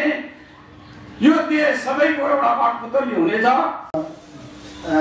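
An elderly man speaks into a microphone with animation.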